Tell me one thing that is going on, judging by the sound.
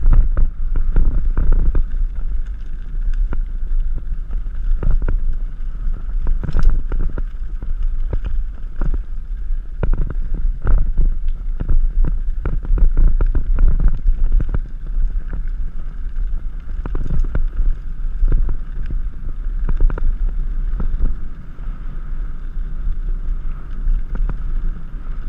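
A bike's frame and chain clatter and knock over bumps.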